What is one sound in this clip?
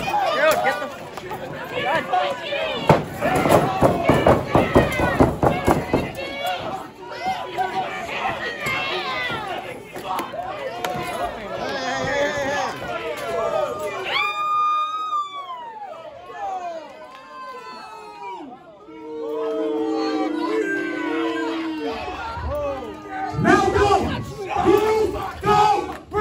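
A man shouts excitedly nearby.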